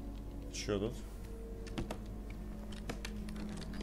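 A heavy wooden chest lid creaks open.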